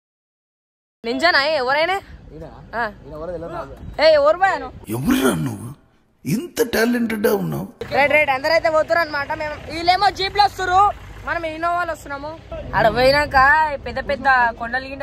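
A teenage boy talks excitedly close to the microphone.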